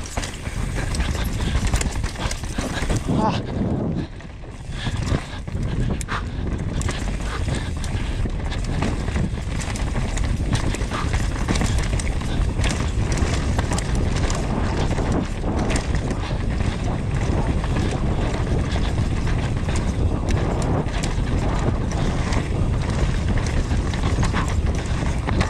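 A bike frame rattles and clanks over bumps.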